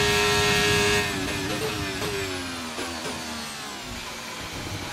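A racing car engine drops in pitch and pops as the car slows down.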